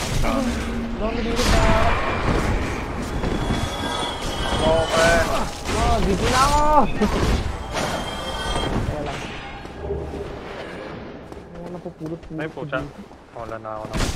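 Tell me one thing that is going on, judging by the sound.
Armoured footsteps run over stone.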